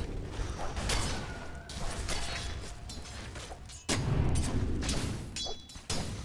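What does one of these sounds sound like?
Fantasy battle sound effects clash and crackle.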